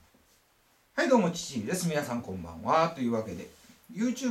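A young man speaks close up with animation.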